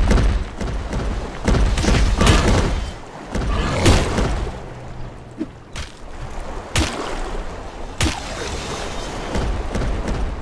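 A large creature splashes through shallow water.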